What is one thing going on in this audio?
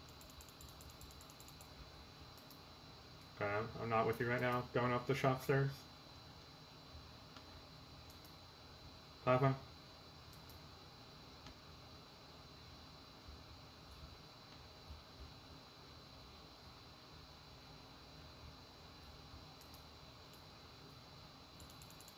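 Keys on a keyboard click softly.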